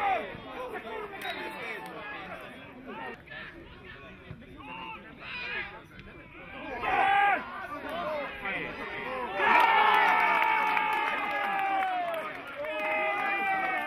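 Men shout excitedly across an open field.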